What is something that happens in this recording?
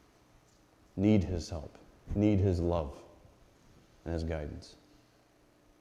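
A middle-aged man speaks calmly into a microphone.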